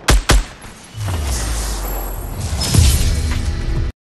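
A triumphant video game victory tune plays.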